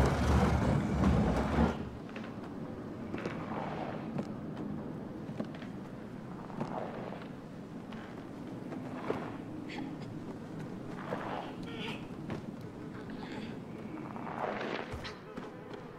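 Small footsteps creak softly on wooden floorboards.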